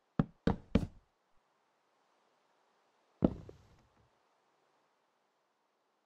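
Rain patters softly and steadily.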